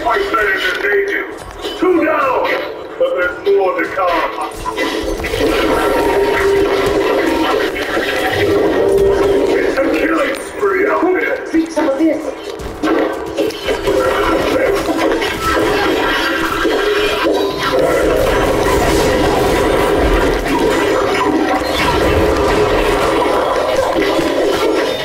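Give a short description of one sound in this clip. Magic blasts whoosh and burst in quick succession.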